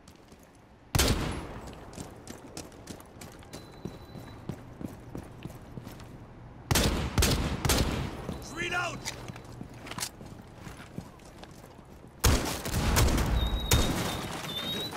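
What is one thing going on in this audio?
A rifle fires loud, sharp shots that echo.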